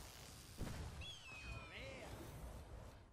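Cards flip over with bright chiming tones.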